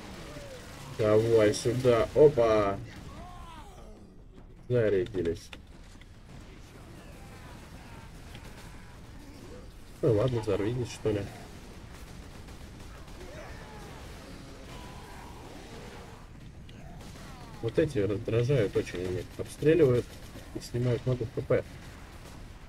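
A man talks with animation into a nearby microphone, in short bursts.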